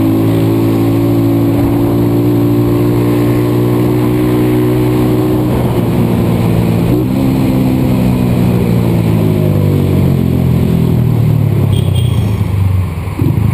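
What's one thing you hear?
A motorcycle engine hums steadily up close, its pitch rising and falling with the throttle.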